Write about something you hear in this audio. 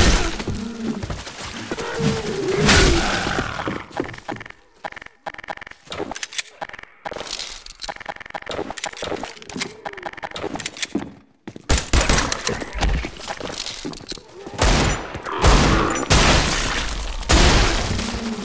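A blade swishes and slashes with wet, fleshy thuds.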